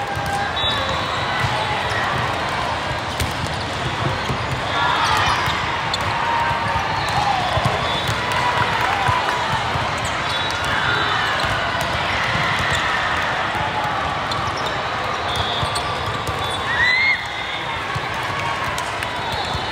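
A volleyball is struck with a smack.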